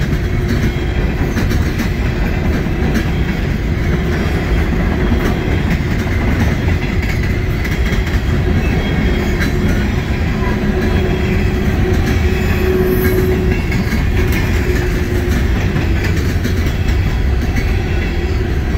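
A long freight train rumbles steadily past on the tracks.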